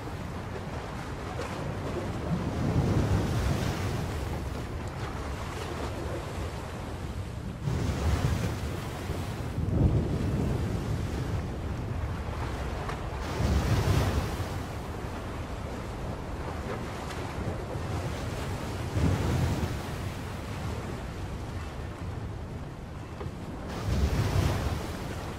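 Strong wind roars across open water.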